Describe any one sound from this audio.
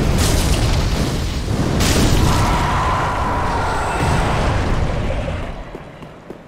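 A huge creature growls and roars.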